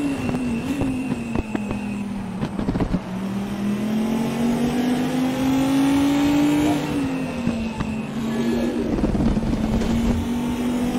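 Tyres screech on asphalt while cornering.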